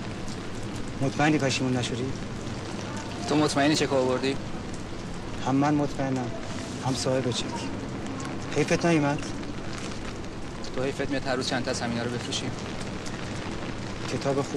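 A second middle-aged man answers calmly nearby.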